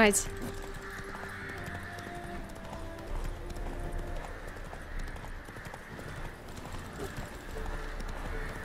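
A horse gallops over grass with steady hoofbeats.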